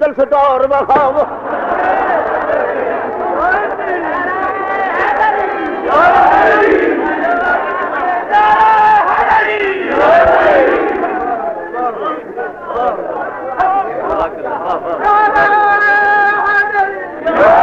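An elderly man speaks forcefully and with animation, heard through an old, slightly hissy recording.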